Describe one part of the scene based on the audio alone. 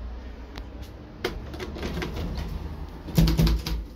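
A finger clicks an elevator button.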